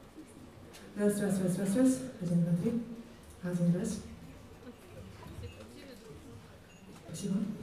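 A young woman sings into a microphone in short, strong phrases.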